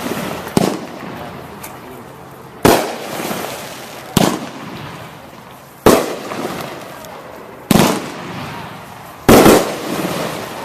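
Fireworks burst with loud booms, one after another, outdoors.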